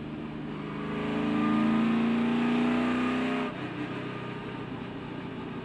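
A race car engine roars up close, climbing in pitch, then suddenly drops in tone.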